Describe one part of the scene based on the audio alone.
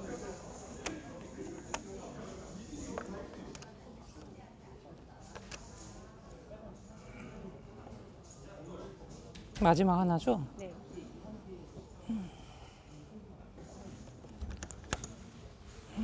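Plastic game pieces click as they are placed on a board.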